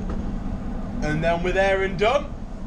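A man speaks casually and close by.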